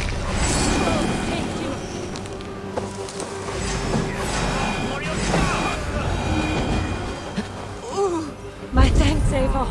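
Tall grass rustles as someone moves through it.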